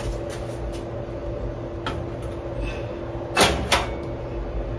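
A heavy pot is set down on a stove with a knock.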